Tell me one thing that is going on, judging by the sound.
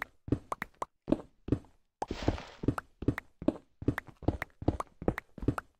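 A pickaxe strikes blocks in quick, repeated knocks.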